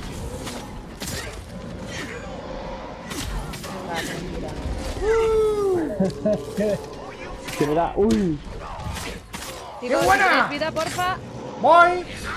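Swords clash and strike in quick, sharp hits.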